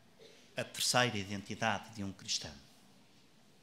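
A man speaks calmly through a microphone in a large echoing hall.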